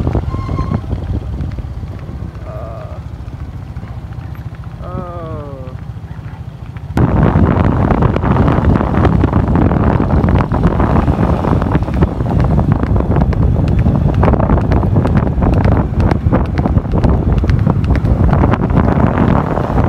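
Motorbike engines hum close by on a road.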